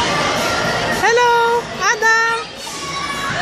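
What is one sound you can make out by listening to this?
A toddler squeals in high-pitched bursts close by.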